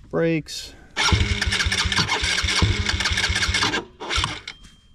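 A small engine rumbles and revs.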